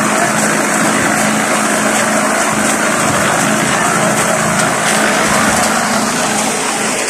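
A concrete mixer rumbles and churns loudly.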